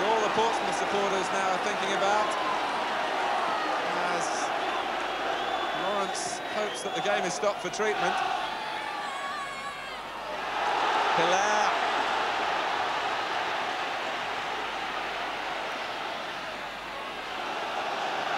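A large stadium crowd roars outdoors, swelling and fading.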